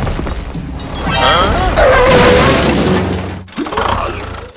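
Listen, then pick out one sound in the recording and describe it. A blast booms with a hiss of smoke.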